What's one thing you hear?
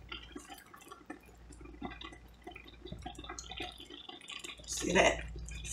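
A thick sauce bubbles and sizzles softly in a pan.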